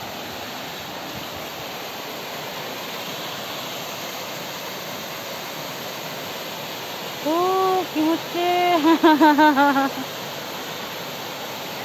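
A waterfall splashes steadily into a pool.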